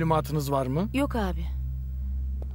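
A man answers briefly.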